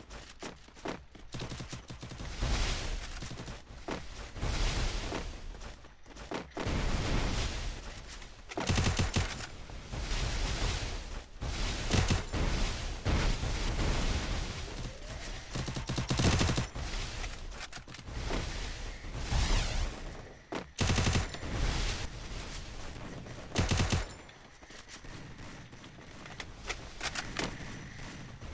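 Gunfire crackles in short rapid bursts.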